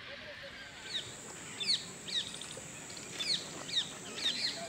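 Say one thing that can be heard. Birds call out with sharp, shrill cries.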